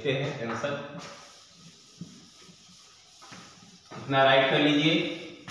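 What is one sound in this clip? A duster rubs across a board.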